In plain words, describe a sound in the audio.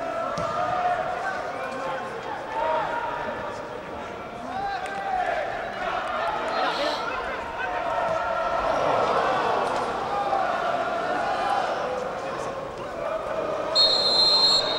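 Spectators chatter and talk nearby in a large open stadium.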